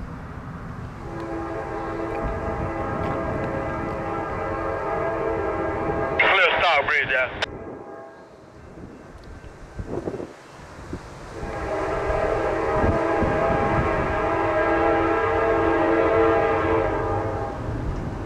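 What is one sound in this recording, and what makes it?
A diesel locomotive horn blows loud, long blasts as a train approaches.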